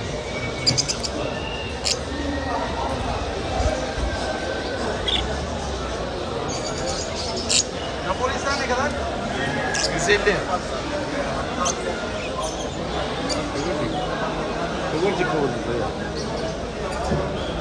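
Many budgies chirp and chatter throughout.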